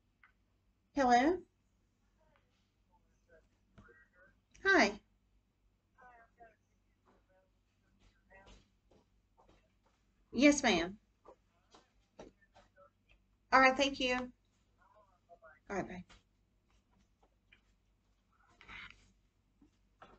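A woman speaks calmly in short phrases close by.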